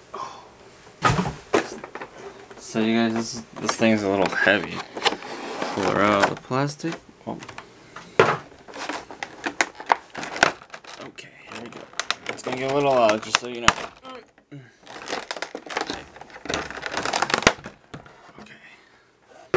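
Stiff clear plastic crinkles and clicks.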